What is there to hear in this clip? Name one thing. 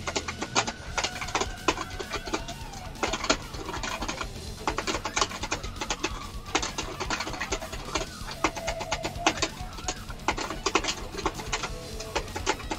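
Plastic buttons and a strum bar click rapidly on a toy guitar controller.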